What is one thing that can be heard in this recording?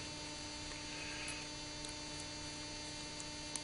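Small metal and wooden parts click softly as hands fit them together.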